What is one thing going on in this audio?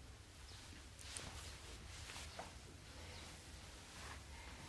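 A man speaks quietly and close by.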